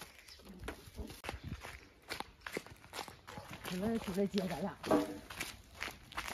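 Footsteps crunch on a gritty path.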